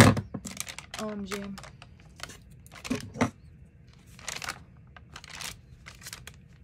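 Paper pages rustle and flap as they are turned.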